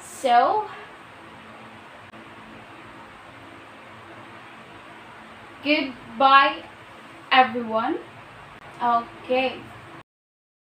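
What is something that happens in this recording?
A young woman speaks clearly and with expression, close by, in short phrases with pauses.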